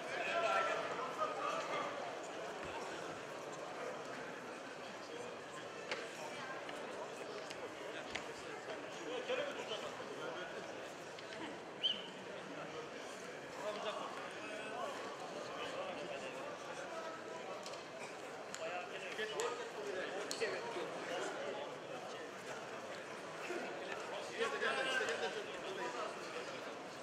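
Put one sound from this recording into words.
A large crowd murmurs and cheers in an echoing hall.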